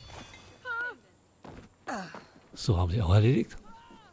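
Boots thud on wooden planks.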